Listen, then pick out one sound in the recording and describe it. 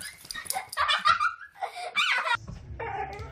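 A dog squeaks a toy rapidly in its mouth.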